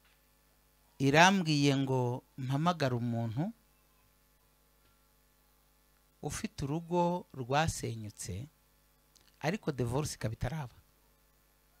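A man speaks with animation into a microphone, heard through loudspeakers, in short bursts with pauses.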